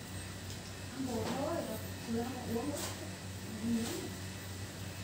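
A woman speaks calmly at a short distance.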